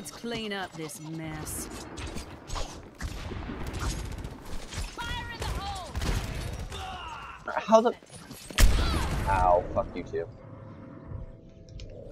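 A revolver fires sharp shots in a video game.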